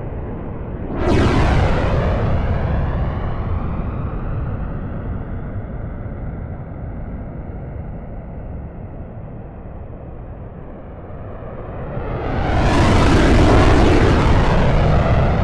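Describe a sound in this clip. A jet rushes past with a loud, sudden whoosh.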